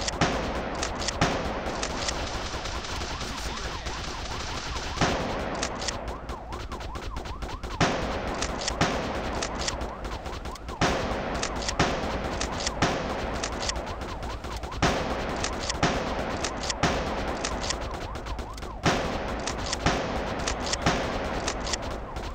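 Gunshots fire in bursts.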